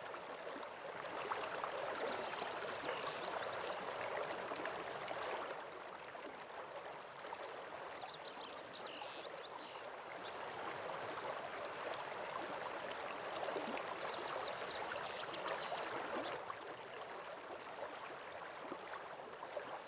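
A waterfall rushes steadily in the distance.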